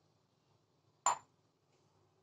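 A glass bowl is set down on a hard counter.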